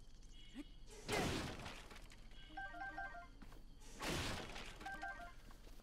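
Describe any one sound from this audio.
An axe swishes through the air with a whoosh.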